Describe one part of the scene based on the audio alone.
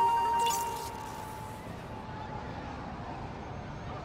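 Wind blows steadily through snowy streets.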